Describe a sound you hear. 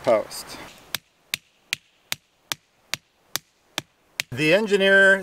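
A hammer knocks sharply on a wooden stake.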